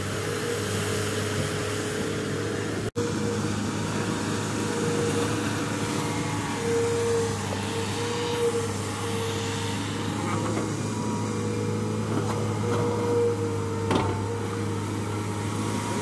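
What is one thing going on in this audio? A diesel engine drones steadily nearby.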